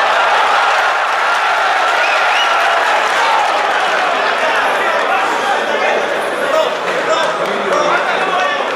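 A large indoor crowd cheers and shouts loudly.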